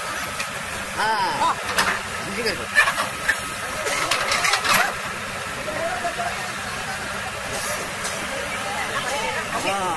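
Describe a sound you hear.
A baby elephant squeals.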